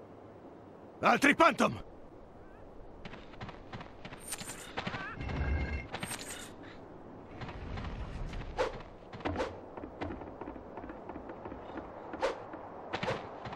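Short electronic game sound effects ring out now and then.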